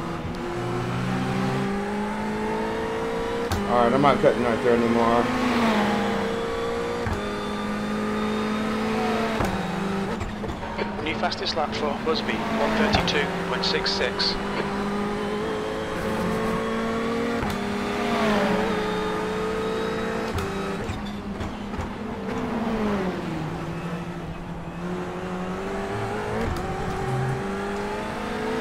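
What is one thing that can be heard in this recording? A racing car engine drones steadily, its pitch rising and falling with gear changes.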